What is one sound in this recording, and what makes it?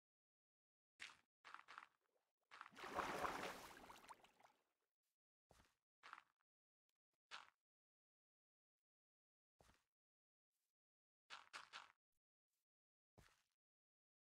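Blocks are placed with short soft thuds.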